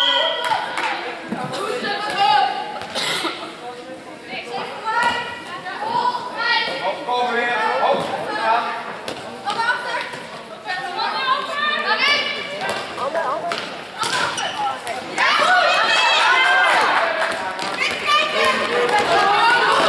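Young girls shout and call out to each other across a large echoing hall.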